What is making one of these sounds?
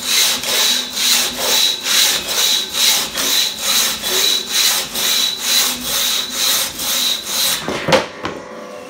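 A crosscut saw rasps rhythmically back and forth through a log.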